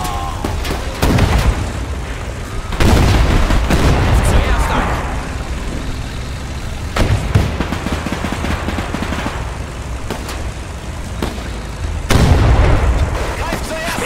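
Explosions boom loudly and rumble.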